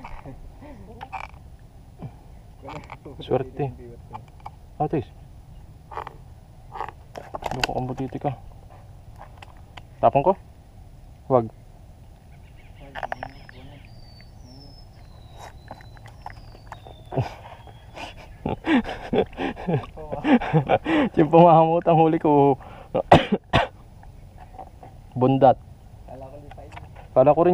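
A wooden paddle knocks against the side of a canoe now and then.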